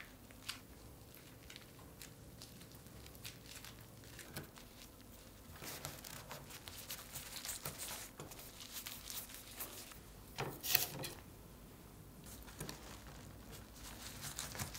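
A bamboo mat rustles and clicks softly as it is rolled.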